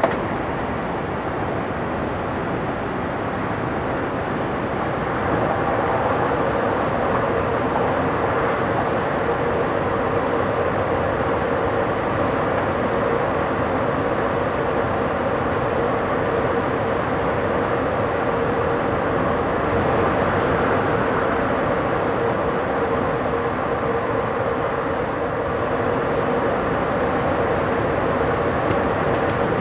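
A train rushes along the rails at high speed with a steady roar.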